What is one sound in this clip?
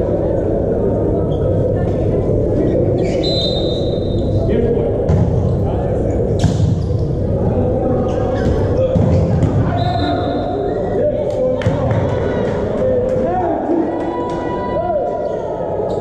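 Players shout to each other on the court.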